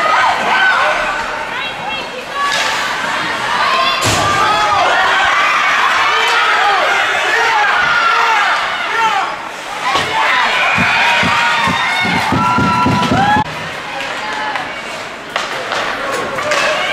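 A crowd shouts and cheers loudly in a large echoing rink.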